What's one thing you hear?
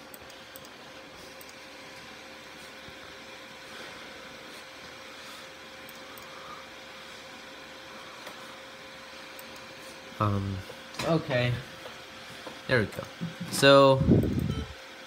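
A computer fan hums steadily.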